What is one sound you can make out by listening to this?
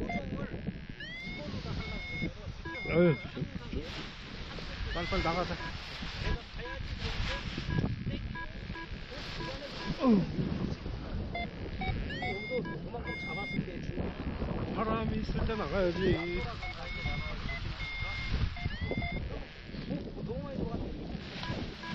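Men talk at a distance.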